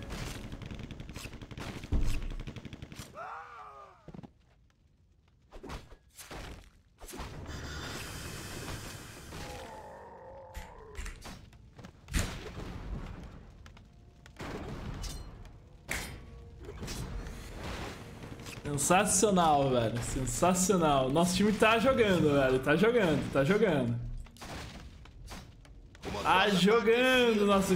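Game battle sounds clash and bang.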